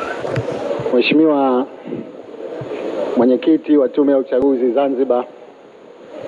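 A man speaks through a microphone and loudspeakers in a large echoing hall.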